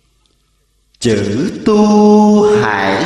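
A young man chants aloud in a loud, steady voice.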